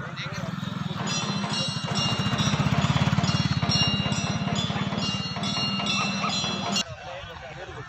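A motorcycle rides past.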